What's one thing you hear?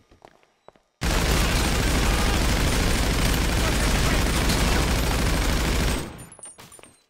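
A submachine gun fires long, rapid bursts.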